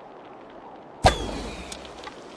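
A heavy thud lands on stone.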